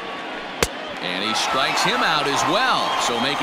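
A stadium crowd cheers and whistles loudly.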